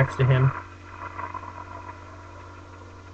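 A fiery blast roars briefly.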